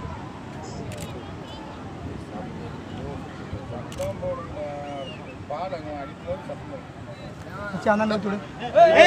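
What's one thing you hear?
A crowd of men murmurs and talks nearby outdoors.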